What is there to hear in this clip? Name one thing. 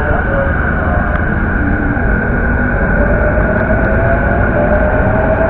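A train rumbles steadily along a track nearby.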